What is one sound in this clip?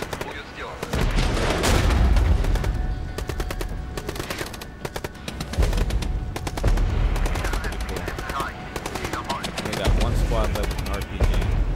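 Rapid gunfire crackles nearby.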